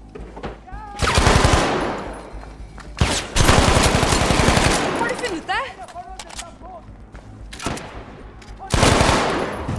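A rifle fires rapid bursts of loud shots that echo off the walls.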